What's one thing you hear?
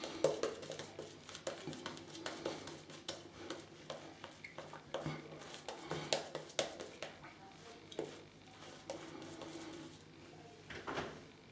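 A razor scrapes through stubble with short rasping strokes.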